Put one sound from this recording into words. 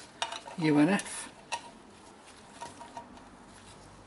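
Metal wrenches clink against each other.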